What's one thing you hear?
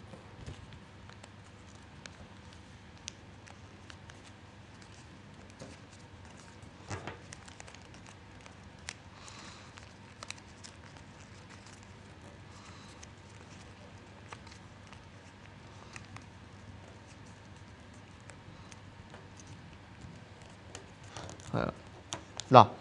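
Paper rustles and crinkles softly as it is folded.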